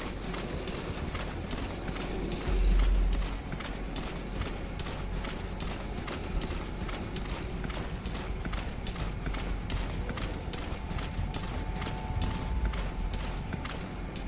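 Grass rustles as a soldier crawls through it.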